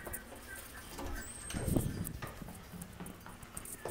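A door latch clicks as a door opens.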